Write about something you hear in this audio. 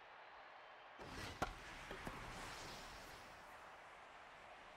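A large crowd cheers loudly.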